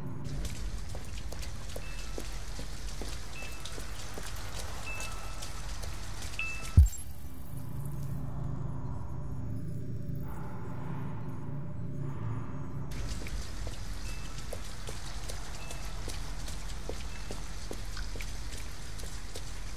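Rain patters steadily on wet pavement outdoors.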